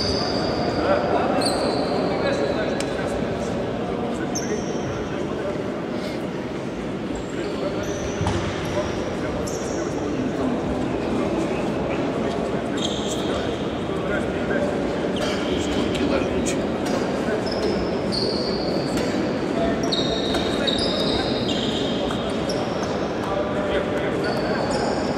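Young men talk together in a large echoing hall.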